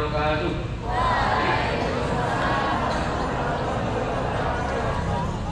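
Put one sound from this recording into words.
A man speaks calmly through a loudspeaker outdoors.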